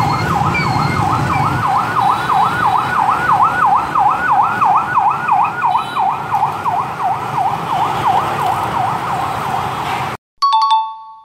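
An ambulance siren wails in a fast, steady warble.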